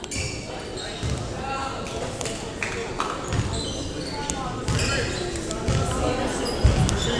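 A basketball bounces on a wooden floor with dull thumps.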